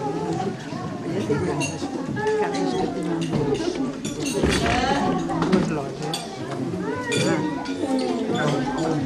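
Dishes and cutlery clatter on tables.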